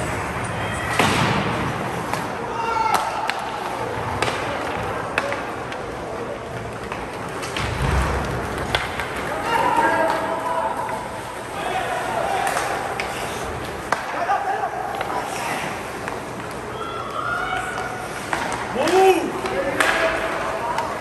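Hockey sticks click against the puck.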